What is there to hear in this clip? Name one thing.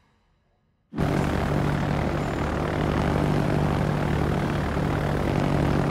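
Ship engines drone steadily over the sea.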